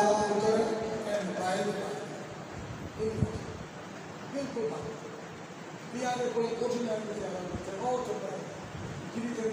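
A man speaks forcefully into a microphone, his voice amplified and echoing.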